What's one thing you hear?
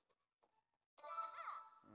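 Electronic slot machine chimes ring out for a win.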